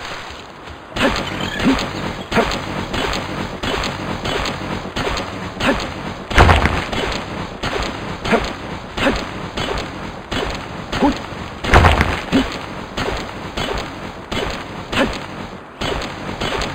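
A pickaxe strikes rock again and again with sharp knocks.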